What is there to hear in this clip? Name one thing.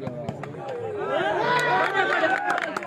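Men cheer loudly.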